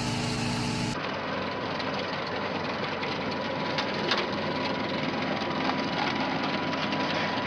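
A planting machine engine drones steadily.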